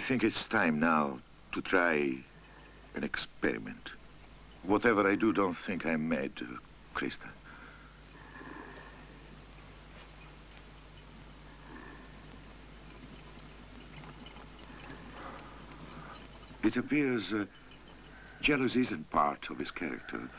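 A middle-aged man speaks quietly and seriously, close by.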